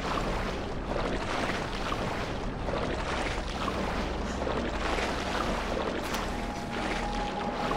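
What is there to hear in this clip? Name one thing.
Footsteps splash steadily through shallow water.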